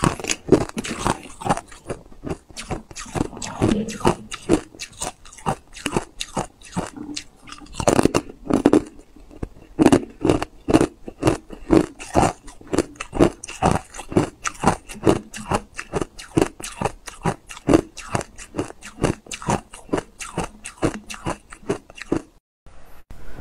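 Ice crunches loudly and sharply close to a microphone as it is bitten and chewed.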